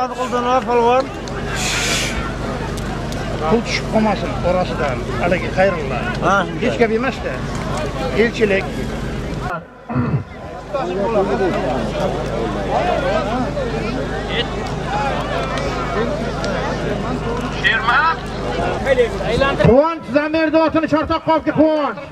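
A large crowd of men shouts and chatters outdoors.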